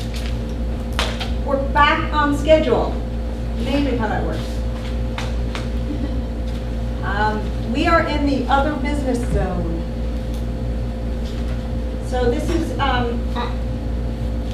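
A woman speaks calmly from across a room, in short bursts.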